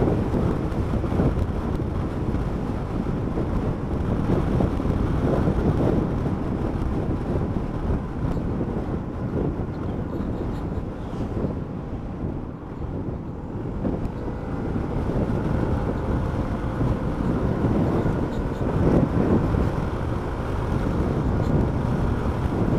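A motorcycle engine hums steadily, rising and falling as the rider speeds up and slows.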